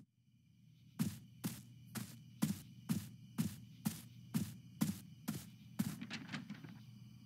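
Footsteps crunch steadily on a path outdoors.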